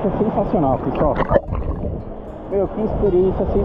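Water splashes and bubbles as a swimmer goes under.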